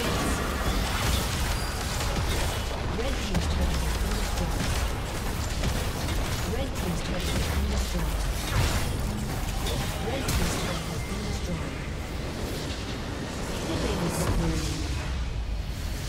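Game spell effects crackle and burst repeatedly.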